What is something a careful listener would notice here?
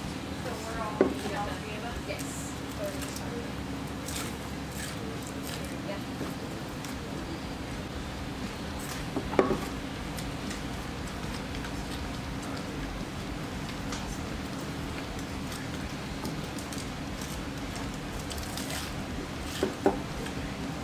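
A glass knocks down onto a table.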